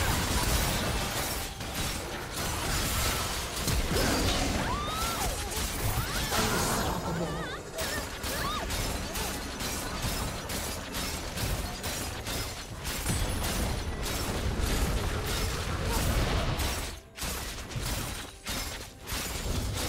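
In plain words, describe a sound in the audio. Blows and impacts thud in quick succession.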